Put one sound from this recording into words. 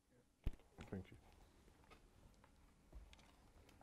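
A phone is handled with small clicks and taps.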